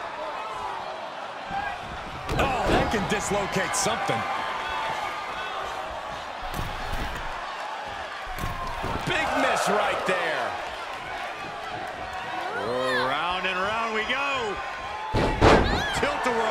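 Bodies slam hard onto a mat.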